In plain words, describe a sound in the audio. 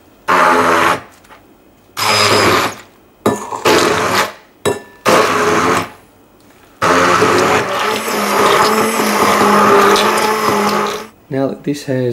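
A hand blender whirs loudly in short bursts.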